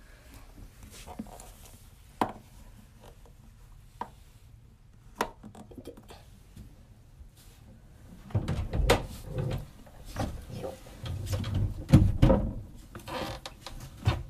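Fabric rubs and rustles against the phone.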